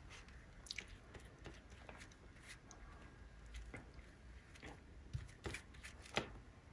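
A brush brushes softly across paper.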